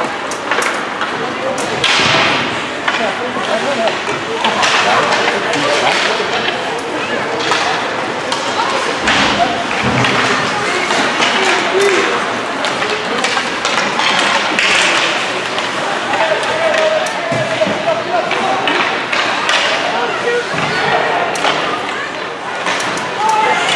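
Skates scrape and carve across the ice in an echoing rink.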